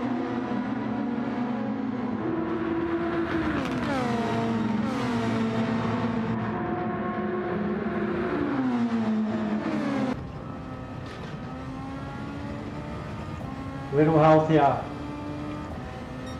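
Racing car engines roar and whine, rising and falling in pitch as they shift gears.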